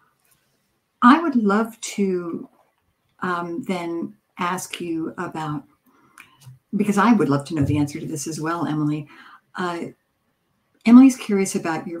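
An older woman speaks calmly, close to the microphone.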